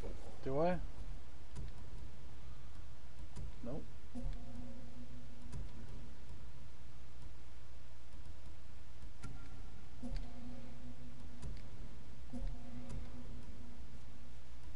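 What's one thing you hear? Soft menu clicks and chimes sound as options are selected in a game.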